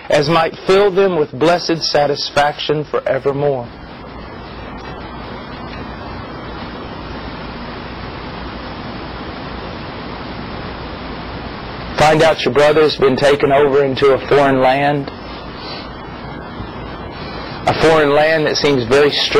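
A man speaks calmly and close into a microphone, with pauses.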